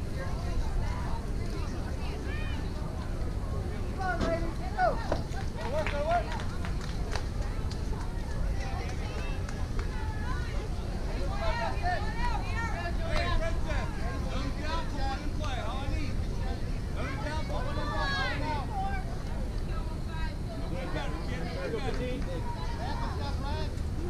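Young women call out to each other across a field.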